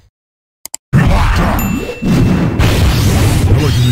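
Fiery explosions roar in a video game.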